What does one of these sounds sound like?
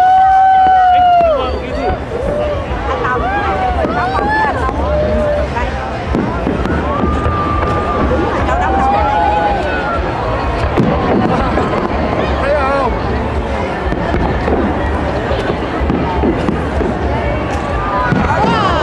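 A crowd cheers and whistles nearby.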